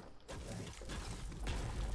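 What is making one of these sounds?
A pickaxe chops into a tree.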